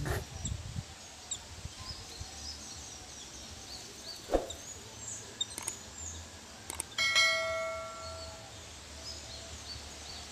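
Birds chirp nearby.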